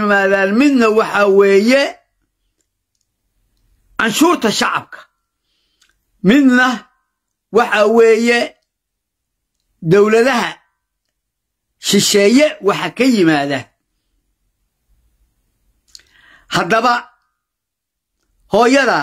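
An elderly man speaks slowly and earnestly into a microphone, with long pauses.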